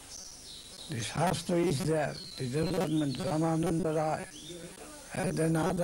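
An elderly man speaks calmly and close by.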